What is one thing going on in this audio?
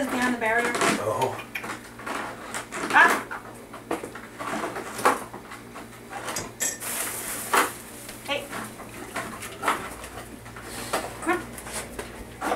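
A woman speaks to a dog nearby.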